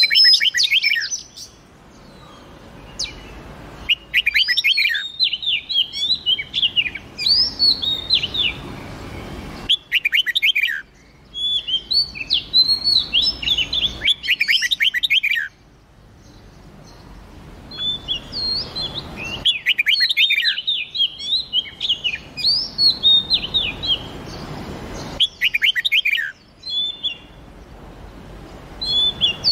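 Songbirds sing in bright, warbling bursts of whistled notes.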